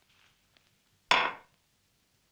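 A dish is set down on a table with a knock.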